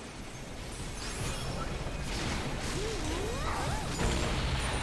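Game spell effects whoosh and crackle as characters fight.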